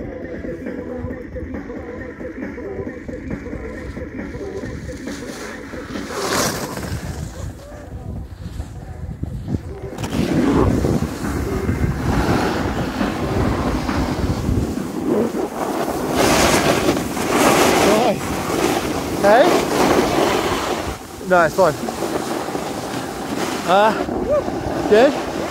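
Skis scrape and hiss across hard snow.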